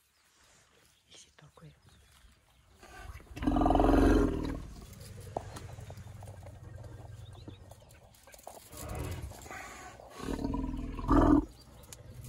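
A young elephant suckles with soft, wet slurping sounds close by.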